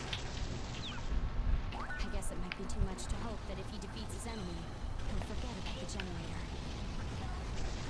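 A young woman speaks calmly over a radio.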